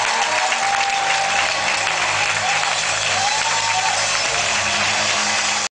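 A large crowd claps and cheers loudly in a big hall.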